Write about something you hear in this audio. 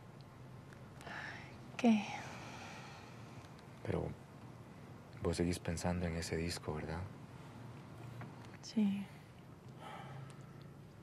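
A woman speaks softly and briefly, close by.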